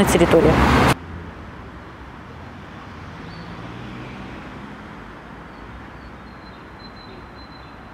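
Cars drive past on a road.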